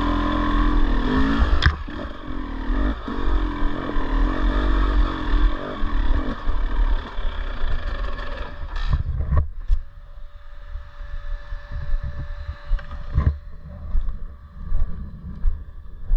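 Tyres crunch over loose rocks.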